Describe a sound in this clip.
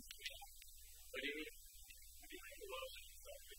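A refrigerator door opens.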